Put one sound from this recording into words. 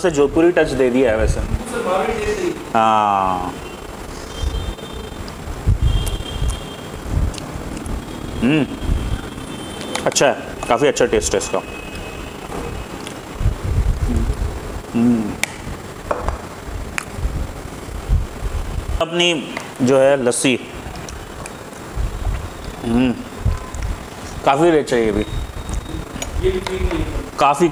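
A spoon clinks against a plate.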